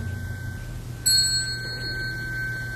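A small hand bell is struck and rings out clearly.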